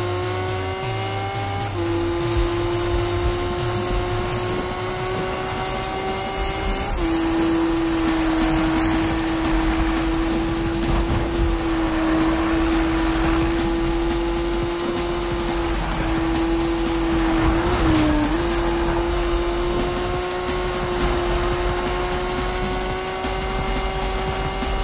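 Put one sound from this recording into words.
A racing car's engine roars at high speed, shifting gears.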